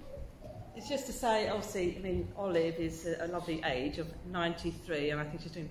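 A middle-aged woman speaks brightly into a nearby microphone.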